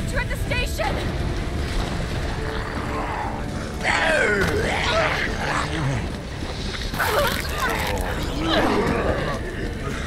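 Men growl and groan.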